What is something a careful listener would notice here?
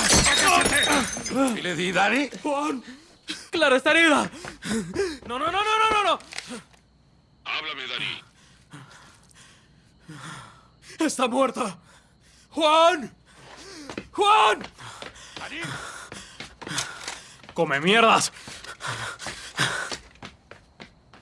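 A man speaks tensely and with emotion, close by.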